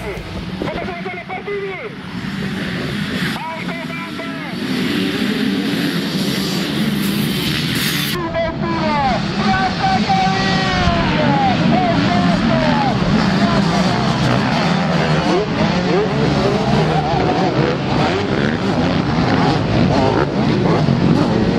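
Many motorcycle engines roar and rev loudly, rising and falling in pitch.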